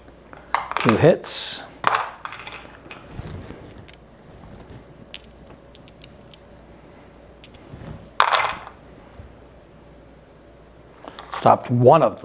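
Small game pieces tap and slide on a board.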